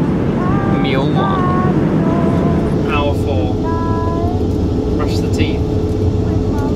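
Aircraft engines drone steadily in a cabin.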